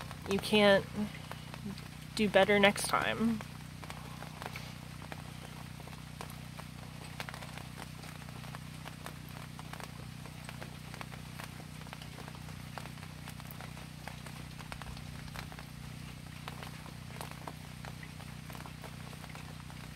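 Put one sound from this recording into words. Light rain patters and drips outdoors.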